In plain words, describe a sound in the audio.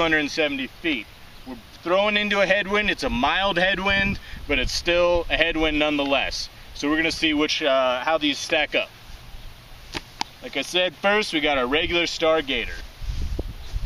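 A man speaks calmly and clearly close by, outdoors.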